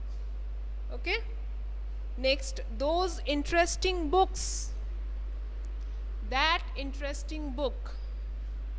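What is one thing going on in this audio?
A woman speaks clearly into a close microphone.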